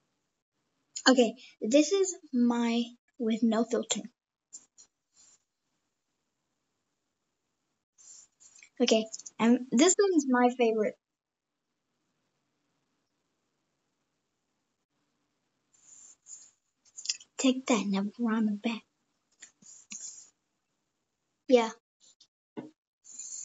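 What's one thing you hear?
A young girl talks with animation close to a phone's microphone.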